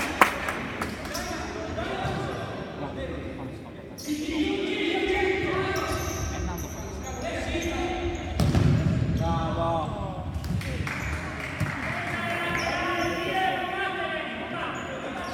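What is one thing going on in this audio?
Players shout to each other across a large echoing hall.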